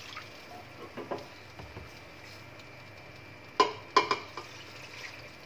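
A metal pan clanks against a pot.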